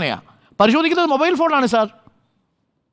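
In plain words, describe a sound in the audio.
A man speaks with animation over a microphone.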